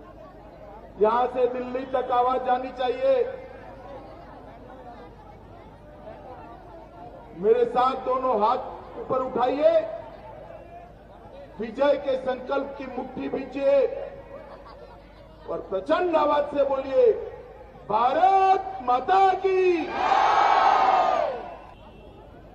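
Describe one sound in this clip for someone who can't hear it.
A man speaks forcefully through a microphone and loudspeakers, in bursts with pauses.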